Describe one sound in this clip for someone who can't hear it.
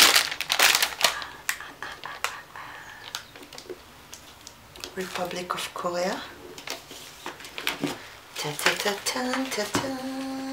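A hard plastic tray clatters and taps as hands turn it.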